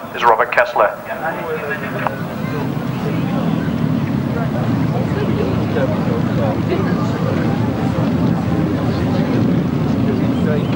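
Motorcycle engines roar as they race past.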